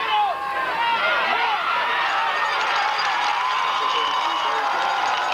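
A large crowd cheers and shouts in the stands outdoors.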